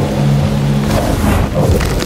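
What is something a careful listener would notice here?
A burst of flame roars and crackles.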